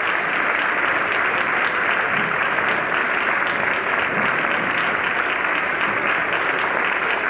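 An audience claps steadily in a large hall.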